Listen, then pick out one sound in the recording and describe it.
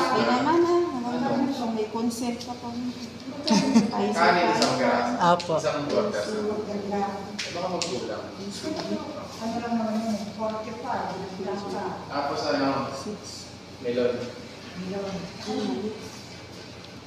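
A young boy talks nearby in a calm voice.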